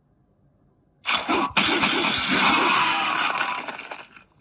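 Sword slashes and hit effects clash from a mobile fighting game.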